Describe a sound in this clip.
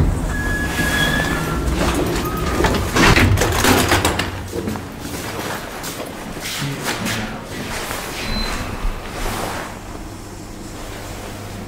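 Elevator doors slide and rumble.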